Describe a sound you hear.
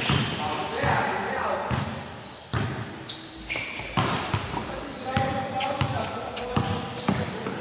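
A basketball bounces on a hard court, echoing in a large covered hall.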